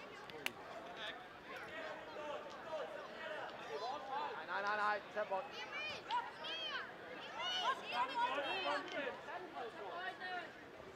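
Children shout and call out across an open sports field outdoors.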